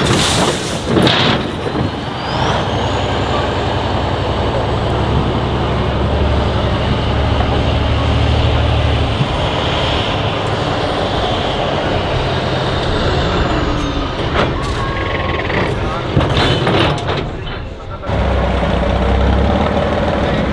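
A heavy truck engine roars and labours loudly.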